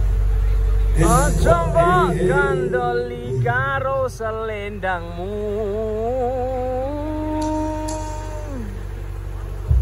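A singer's wavering voice plays loudly over large loudspeakers outdoors.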